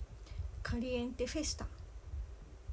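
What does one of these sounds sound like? A young woman speaks briefly and softly close to a microphone.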